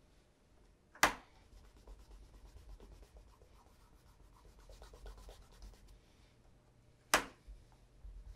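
A shoe knocks down onto a wooden table.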